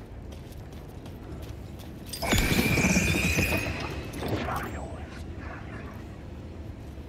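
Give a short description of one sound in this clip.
Footsteps run over a hard, wet floor.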